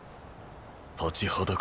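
A man speaks in a low, stern voice.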